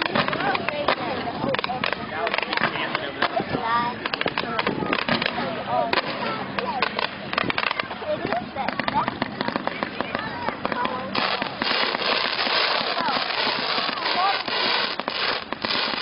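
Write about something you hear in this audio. Fireworks burst and crackle far off across water.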